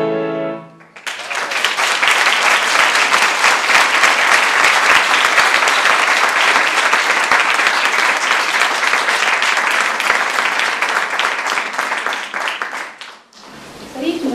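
An audience applauds loudly in a large room.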